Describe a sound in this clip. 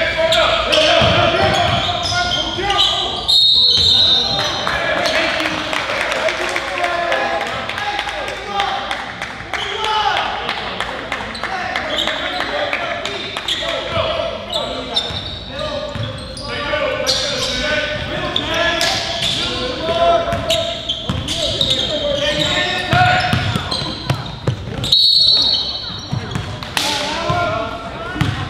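Sneakers squeak on a hard floor.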